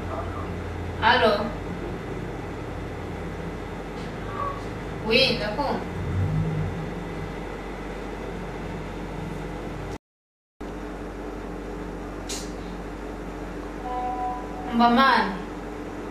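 A young woman speaks briefly into a phone nearby.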